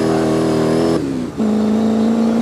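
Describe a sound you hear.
A car engine drops in pitch briefly as it shifts gear.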